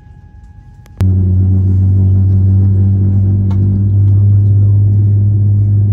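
A jet engine hums loudly and steadily close by.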